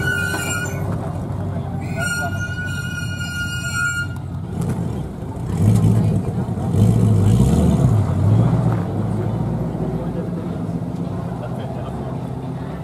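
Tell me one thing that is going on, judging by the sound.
A sports car engine idles with a deep rumble.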